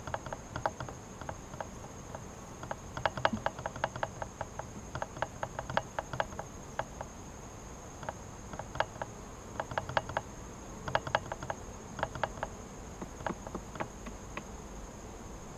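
A hive tool scrapes and knocks against a wooden hive frame.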